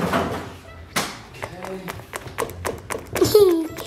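A young girl knocks with her knuckles on a hard surface.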